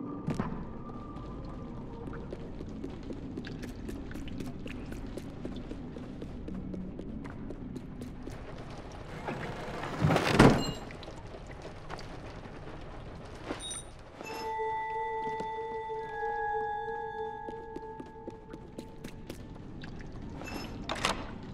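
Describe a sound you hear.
Small footsteps patter on a wooden floor.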